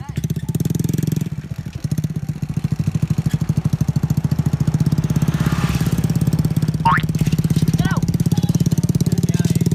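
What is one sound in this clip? A motorcycle engine idles with a fast, steady putter.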